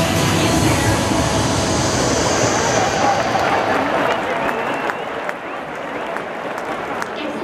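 A large stadium crowd cheers and laughs loudly, then quiets down.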